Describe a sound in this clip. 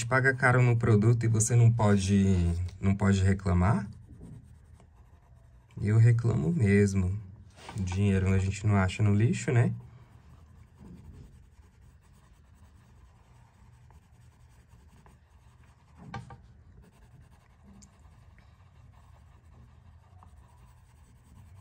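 A coloured pencil scratches softly across paper.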